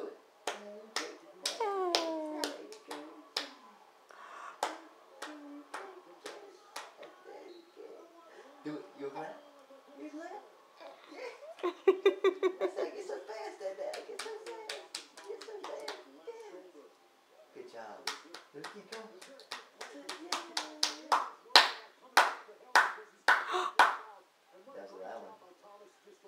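A man talks playfully to a baby close by.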